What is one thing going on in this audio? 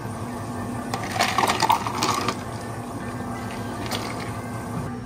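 Ice cubes clatter into a glass.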